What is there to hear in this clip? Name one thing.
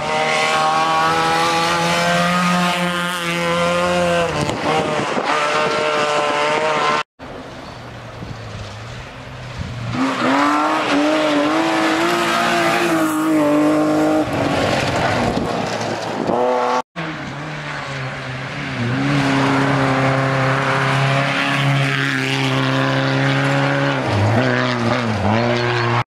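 Tyres crunch and spray gravel as a car slides through a bend.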